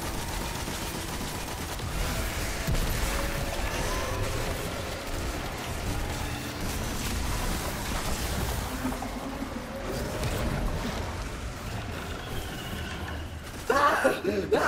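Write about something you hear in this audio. Laser gunfire and energy blasts crackle and rumble.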